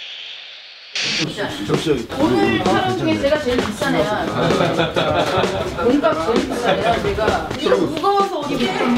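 Several people talk and laugh with animation close by.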